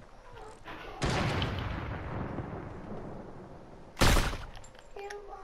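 A rifle fires a loud shot that echoes and slowly fades.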